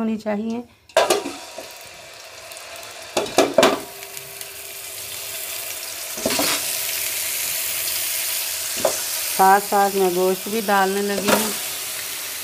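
Pieces of raw meat drop with soft thuds into a metal pot.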